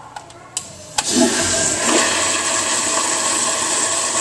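A toilet flushes with a loud rush of water.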